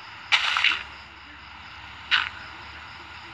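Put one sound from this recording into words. Blocks of earth crunch as they are dug out in a game.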